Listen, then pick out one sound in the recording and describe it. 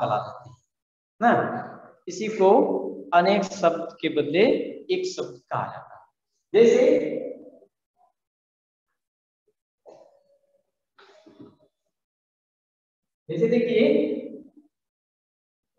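A middle-aged man talks with animation, heard through an online call.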